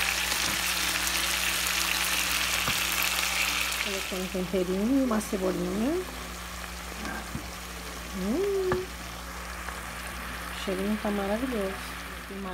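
A spatula scrapes and stirs food in a pot.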